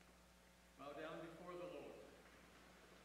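A man intones a prayer through a microphone in a large echoing hall.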